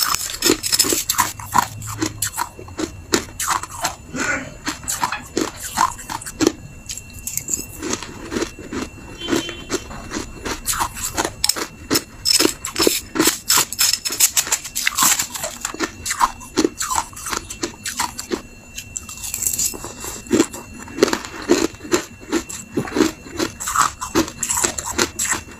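A young woman crunches ice loudly up close.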